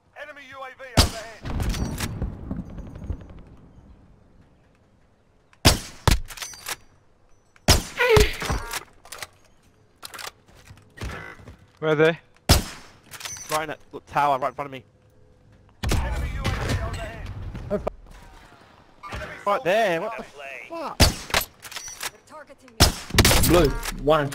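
Sniper rifle shots crack loudly, one at a time.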